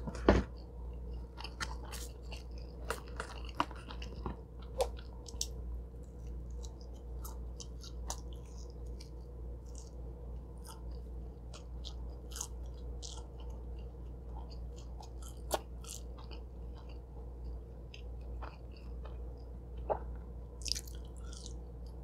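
A young woman chews softly and wetly close to a microphone.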